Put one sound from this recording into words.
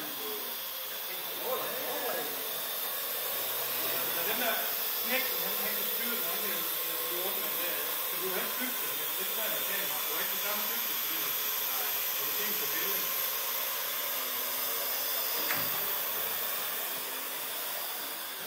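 A small drone's propellers whine steadily as it flies.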